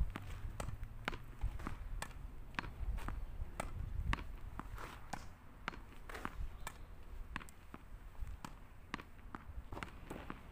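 A tennis racket strikes a ball again and again.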